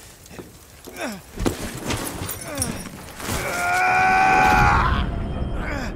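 A young man shouts in alarm, close by.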